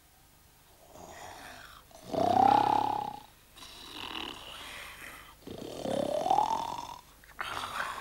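A puppet character speaks in a comic voice.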